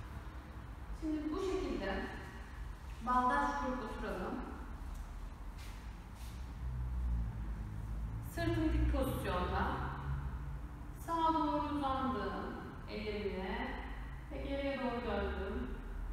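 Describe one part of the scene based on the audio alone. A young woman speaks calmly, as if giving instructions, in a room with a slight echo.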